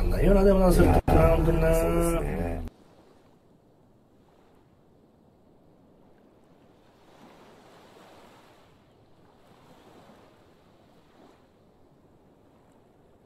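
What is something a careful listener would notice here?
Gentle waves ripple softly on open water.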